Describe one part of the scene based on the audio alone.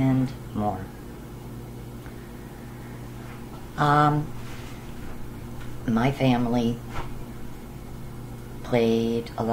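A middle-aged woman speaks calmly in short phrases, close to the microphone, with pauses between them.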